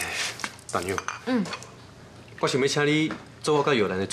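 Tea pours into a cup.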